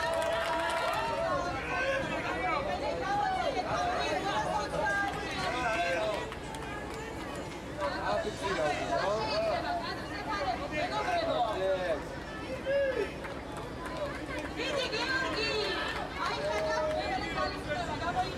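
A crowd of men and women talk and cheer loudly close by.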